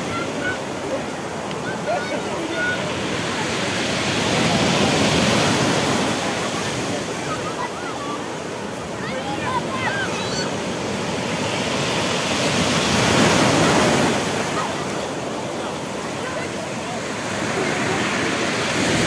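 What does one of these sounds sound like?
A lively crowd chatters along the beach.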